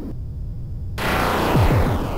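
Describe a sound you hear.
An arcade game laser fires with a sharp zap.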